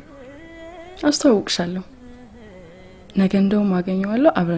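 A young woman speaks softly and cheerfully close by.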